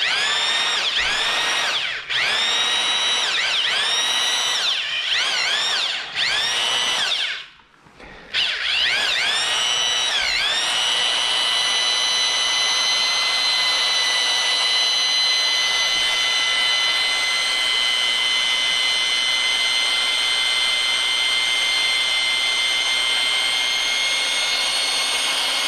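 A power drill whines as it revs up and down in short bursts, then runs steadily.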